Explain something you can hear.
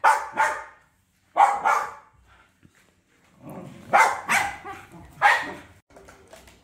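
A small dog barks sharply several times close by.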